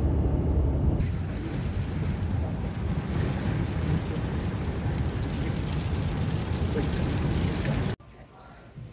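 Tyres roll on a road.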